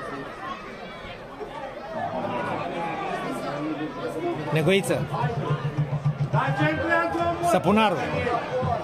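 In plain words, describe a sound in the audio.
A crowd of spectators talks and shouts nearby, outdoors.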